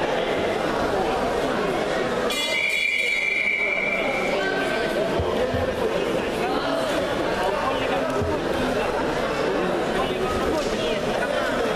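Wrestlers' feet thud and shuffle on a mat.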